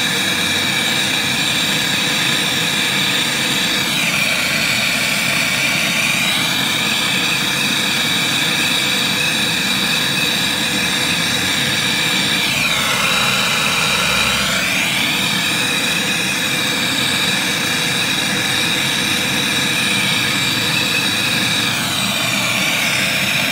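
A torch flame roars steadily and loudly.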